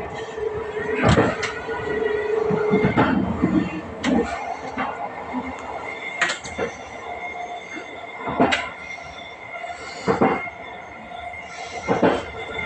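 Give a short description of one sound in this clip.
Train wheels clack loudly over rail joints at intervals.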